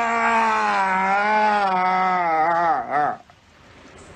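A man screams loudly in a long, wavering cry that breaks off.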